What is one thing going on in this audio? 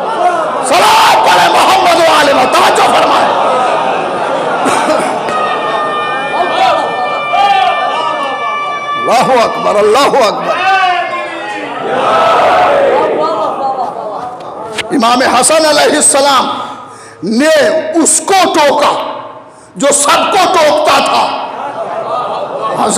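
A man speaks passionately through a microphone in an echoing hall.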